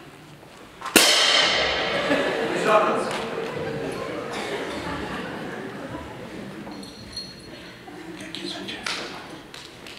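A small group of musicians plays music.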